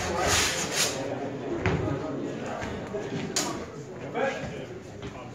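Two fencers' swords clash and clack sharply.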